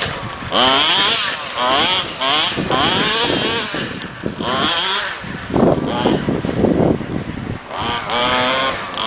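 A small electric motor whines, rising and falling in pitch as it revs again and again.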